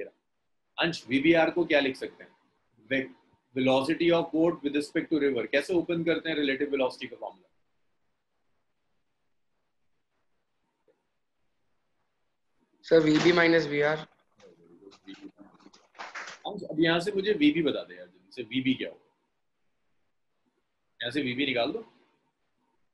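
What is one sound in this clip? A young man speaks calmly through a microphone, explaining in bursts with pauses.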